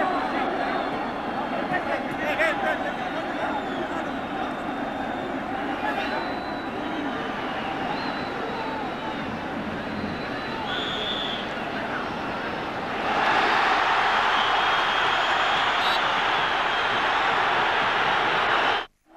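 A large crowd roars and whistles in a stadium.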